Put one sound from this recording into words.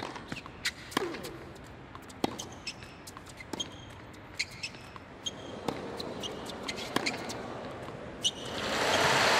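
A tennis ball is struck back and forth with sharp pops of rackets.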